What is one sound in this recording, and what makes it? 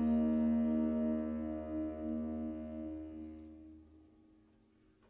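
A band holds a final chord that fades out.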